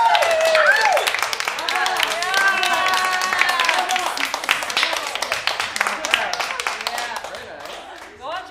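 An audience and performers applaud in a hall.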